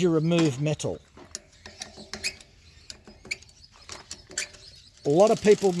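Metal chain links click and rattle softly.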